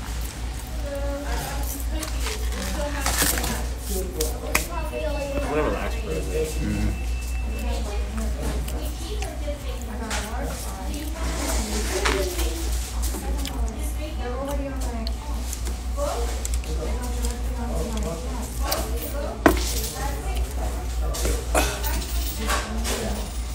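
A man talks casually, close by.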